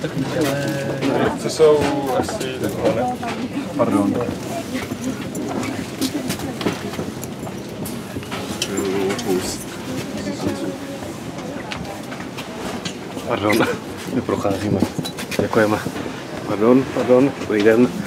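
Men and women talk nearby in a crowded, enclosed space.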